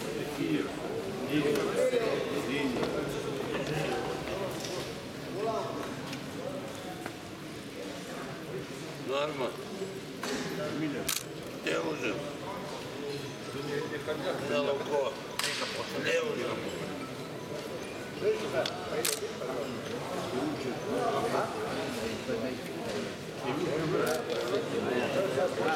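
Many men talk at once in a large echoing hall.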